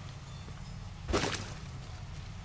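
Water splashes loudly as someone steps into a pond.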